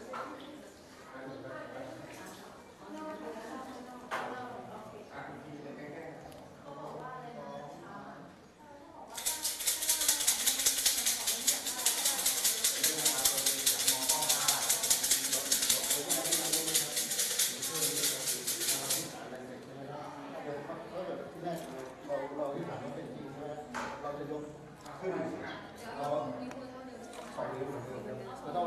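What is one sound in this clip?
Young women chatter softly nearby.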